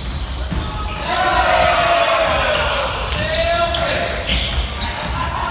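Young spectators shout and cheer loudly in an echoing hall.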